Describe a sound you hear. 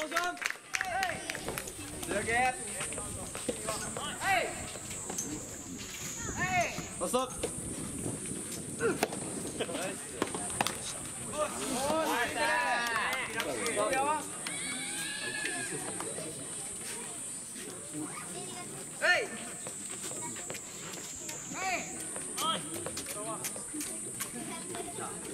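Young players shout loudly across an open outdoor court.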